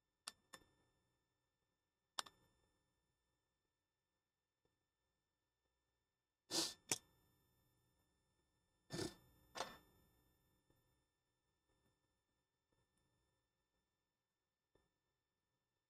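Small metal tools click and tap against a phone.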